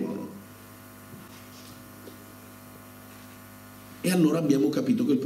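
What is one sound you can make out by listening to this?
A middle-aged man speaks with animation through a microphone.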